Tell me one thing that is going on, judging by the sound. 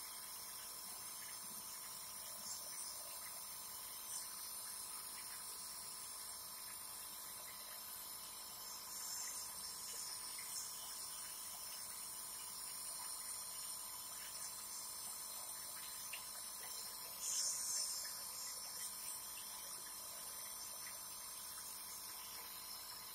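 A man breathes in and out slowly through a mouthpiece.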